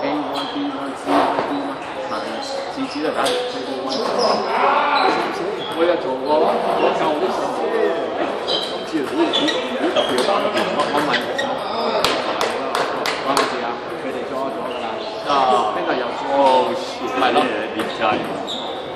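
Ping-pong balls click sharply on tables and paddles in a large echoing hall.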